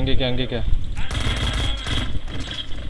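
A submachine gun fires a burst.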